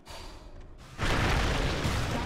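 Magic spells blast and crackle in a fantasy battle.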